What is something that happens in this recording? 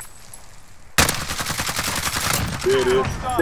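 A rifle fires rapid shots in quick succession.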